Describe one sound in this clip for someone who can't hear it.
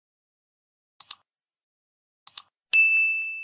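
A mouse button clicks twice, then twice again.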